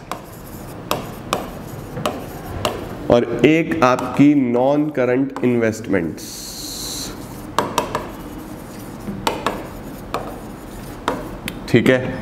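Chalk taps and scrapes on a board.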